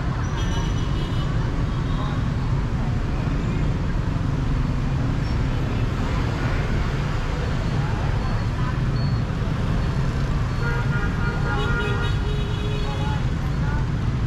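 Car and motorbike horns honk now and then.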